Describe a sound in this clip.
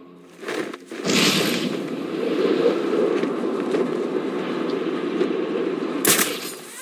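Wind rushes loudly past, as if in fast flight.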